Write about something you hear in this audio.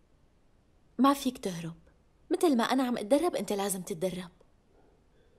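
A young woman speaks calmly up close.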